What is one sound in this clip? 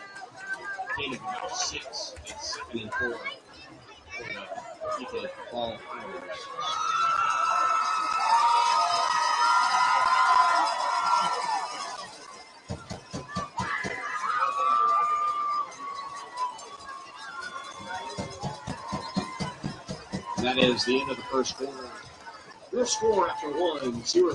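A crowd of spectators cheers and shouts outdoors in the distance.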